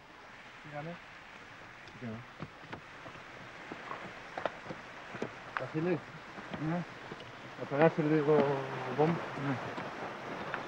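A man speaks in short phrases nearby.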